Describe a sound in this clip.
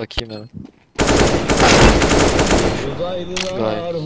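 A rifle fires a burst of loud gunshots.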